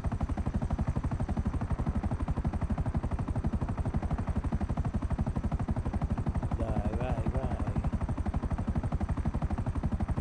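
Helicopter rotor blades thump rapidly and steadily from inside the cabin.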